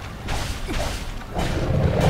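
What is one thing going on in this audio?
A large sea beast roars.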